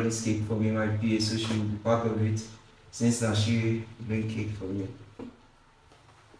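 A keyboard plays a short tune of chords.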